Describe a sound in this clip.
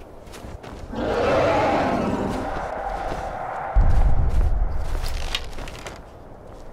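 A dragon roars loudly overhead.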